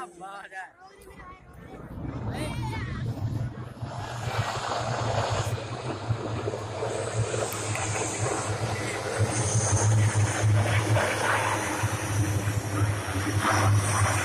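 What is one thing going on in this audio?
Propeller aircraft engines roar loudly and steadily.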